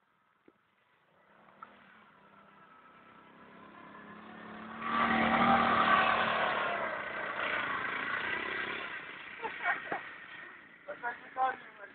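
A small buggy engine revs up loudly, then drives away and fades.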